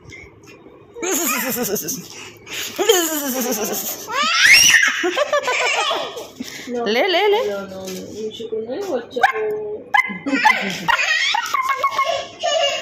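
A toddler girl squeals and laughs with delight close by.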